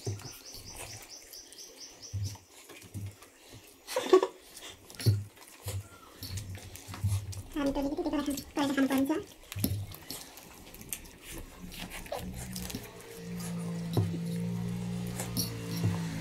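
Boys slurp noodles noisily.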